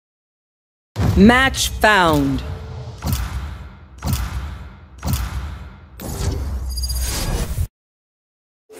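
A rising chime sounds, then a countdown beeps once each second.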